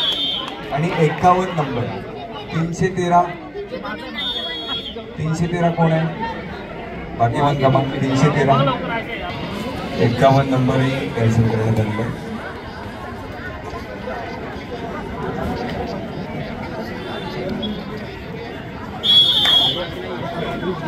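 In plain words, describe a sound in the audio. A referee's whistle blows in short shrill blasts.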